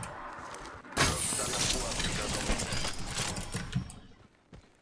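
A loot bin's lid clanks open with a metallic rattle.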